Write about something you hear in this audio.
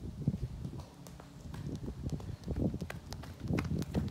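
A man's footsteps thud on grass as he runs closer.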